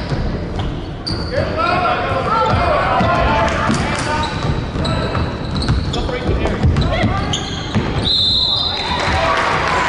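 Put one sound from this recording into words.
Sneakers squeak sharply on a wooden court in a large echoing hall.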